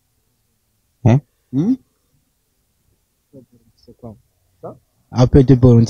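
A young man speaks into a microphone close up, in short bursts.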